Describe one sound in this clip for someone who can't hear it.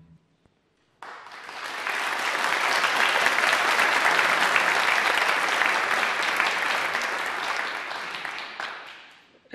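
A crowd applauds loudly in a large hall, then the applause fades.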